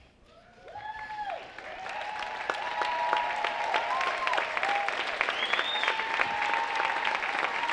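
People in a crowd cheer and shout.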